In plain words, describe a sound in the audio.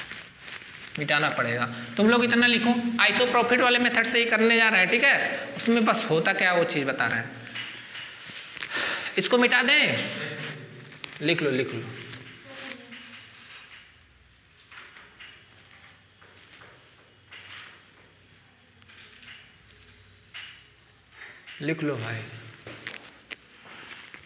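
A young man speaks calmly and clearly, as if teaching, close by.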